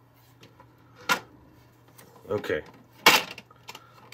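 A plastic frame snaps shut with a click.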